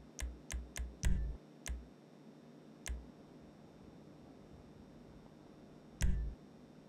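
Short soft game menu clicks tick now and then.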